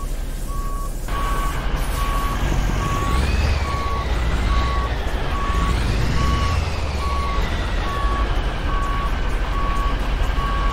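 A truck engine rumbles and rises and falls in pitch.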